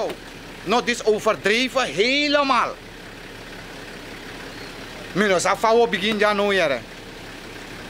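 A middle-aged man speaks with animation close to the microphone, in short bursts.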